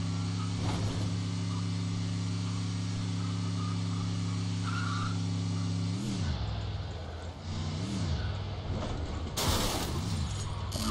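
A car engine drones steadily, then revs up and down.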